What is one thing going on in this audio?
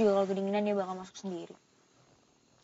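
A young woman speaks in a strained, tearful voice close by.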